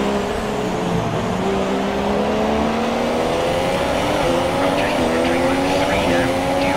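A Formula One car's engine rises in pitch as it accelerates up through the gears.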